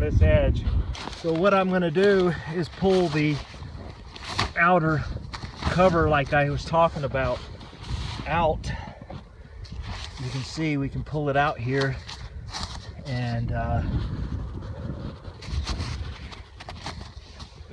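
Boots crunch through deep snow with each step.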